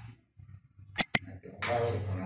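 A spoon clinks against a dish.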